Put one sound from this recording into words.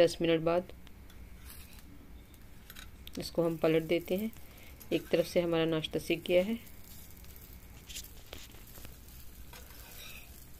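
A metal spatula scrapes and taps against a frying pan.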